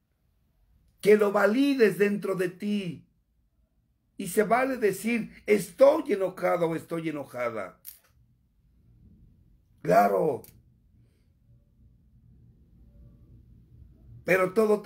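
A middle-aged man speaks with animation close to a microphone, pausing between phrases.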